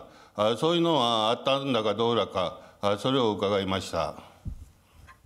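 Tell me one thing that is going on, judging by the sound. A man speaks firmly into a microphone in a large room.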